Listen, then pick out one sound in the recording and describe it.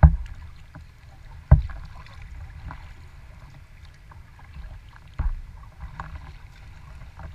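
Small waves slap against the hull of a kayak.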